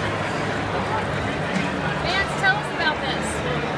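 Water pours from a dispenser into a metal bottle.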